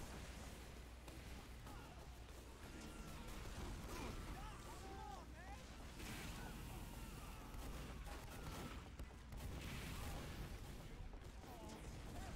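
Rockets and gunfire burst and explode nearby.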